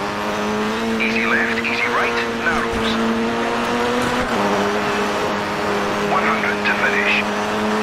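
Car tyres squeal on tarmac through the turns.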